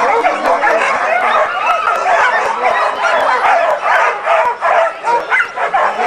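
Many dogs yelp and bark excitedly close by.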